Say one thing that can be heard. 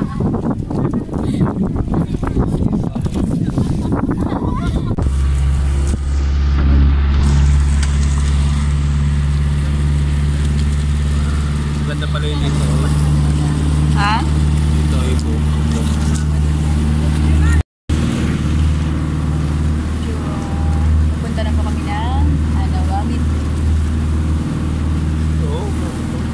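Young women chat faintly in the background.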